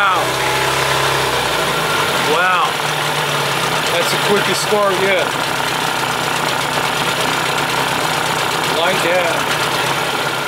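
An outboard motor idles with a steady low rumble.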